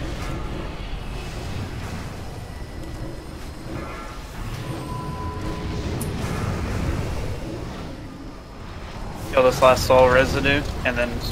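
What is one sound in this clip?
Magic spells whoosh and rumble in a battle.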